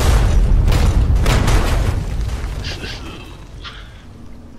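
An explosion booms loudly and rumbles away.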